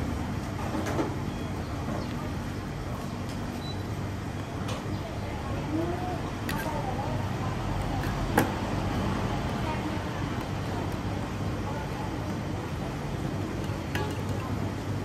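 A metal ladle clinks against the pot.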